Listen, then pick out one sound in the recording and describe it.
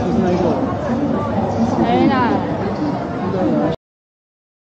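Many people chatter in a busy, echoing hall.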